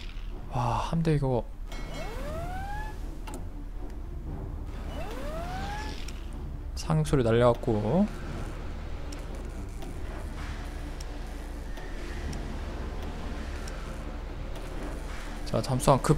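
Soft clicks and chimes of a game menu sound as panels open.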